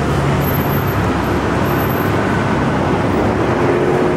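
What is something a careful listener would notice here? A car drives past on the road.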